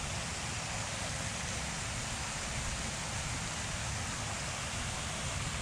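Wind blows steadily and rumbles outdoors.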